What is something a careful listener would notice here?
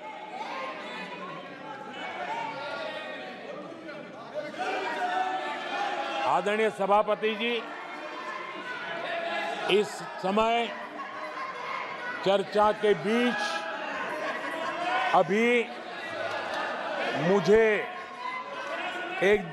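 An elderly man speaks with animation into a microphone in a large hall.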